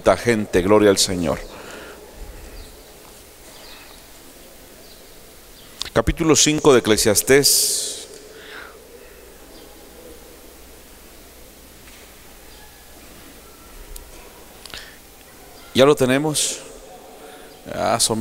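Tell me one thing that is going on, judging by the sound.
A man speaks slowly and deliberately into a microphone, with long pauses, in a reverberant hall.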